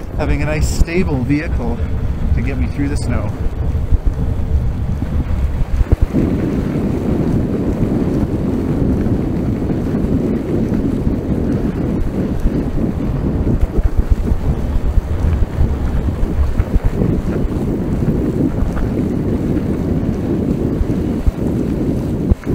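Tyres crunch and rumble steadily over a gravel road.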